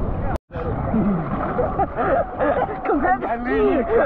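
A young man laughs with animation.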